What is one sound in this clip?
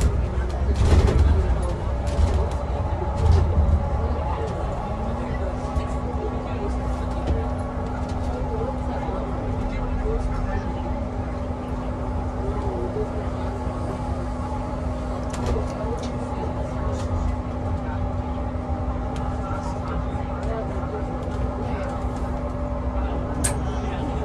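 A bus body rattles and clicks as it rolls.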